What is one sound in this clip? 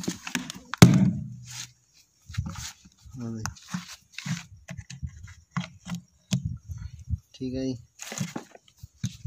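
A metal tool taps and scrapes against a hard plastic lid.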